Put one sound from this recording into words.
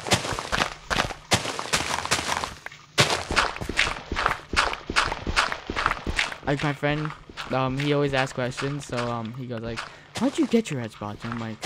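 Dirt and gravel crunch in quick, repeated scrapes as a shovel digs.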